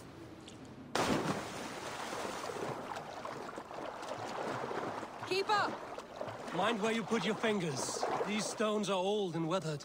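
Water splashes steadily as someone swims.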